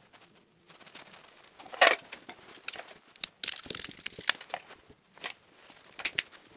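Plastic-sheathed cables rustle and knock as they are handled.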